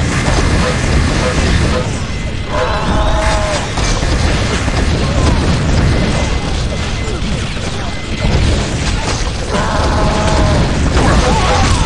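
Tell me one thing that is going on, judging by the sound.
Rockets explode with loud booms.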